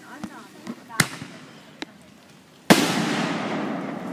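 Fireworks explode with loud bangs that rumble and slowly fade.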